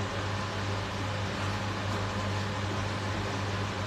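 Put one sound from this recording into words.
Slippers slap and shuffle on a hard floor.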